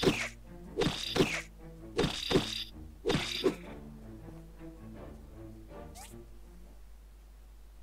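Soft music plays and fades away.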